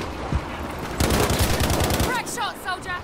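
A machine gun fires a rapid burst close by.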